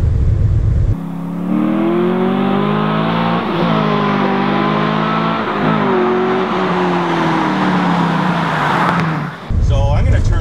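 A car engine roars as the car speeds closer and passes by outdoors.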